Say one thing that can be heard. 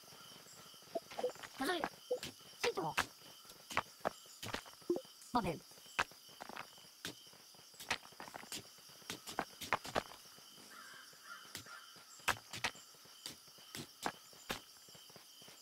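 Short electronic game sounds click and chirp again and again.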